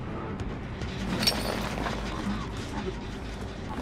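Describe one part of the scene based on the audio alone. A metal trap clanks as it is set.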